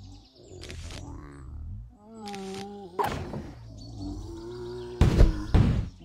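Cartoon zombies groan and moan.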